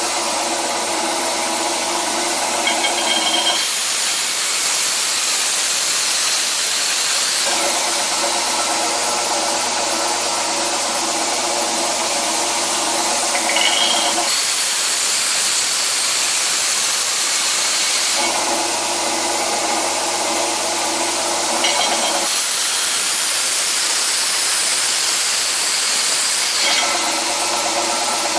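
A belt grinder motor hums steadily.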